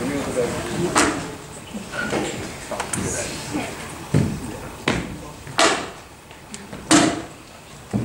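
Footsteps thump on a wooden stage.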